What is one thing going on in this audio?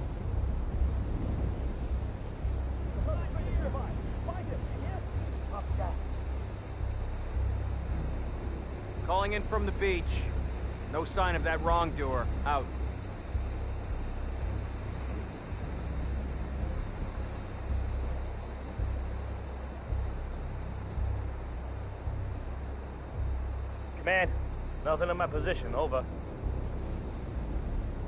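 Strong wind gusts and roars outdoors.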